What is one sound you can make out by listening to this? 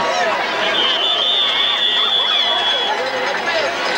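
A referee's whistle blows in a long steady blast.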